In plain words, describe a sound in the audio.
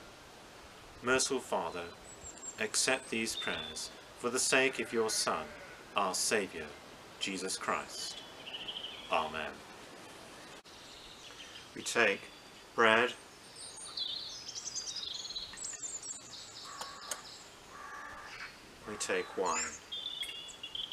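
An elderly man speaks calmly outdoors, close by.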